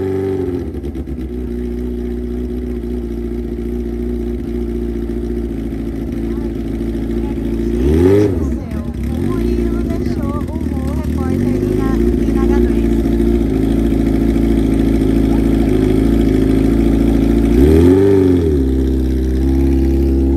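A motorcycle engine idles loudly close by.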